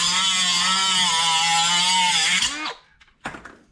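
An angle grinder whines loudly, cutting metal.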